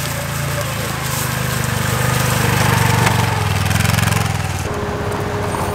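A small off-road vehicle's engine rumbles close by as it drives past.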